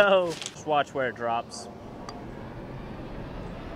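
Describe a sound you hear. A golf club taps a putt softly.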